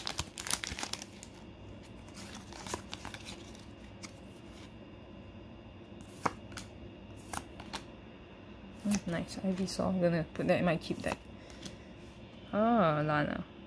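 Playing cards slide and tap against each other.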